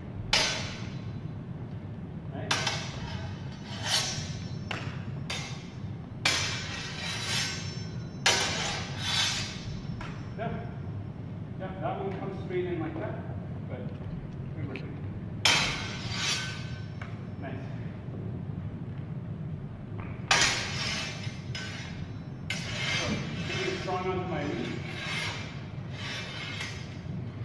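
Swords clash and clatter sharply in an echoing hall.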